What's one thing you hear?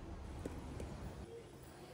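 Footsteps tap on a hard floor in a quiet indoor hall.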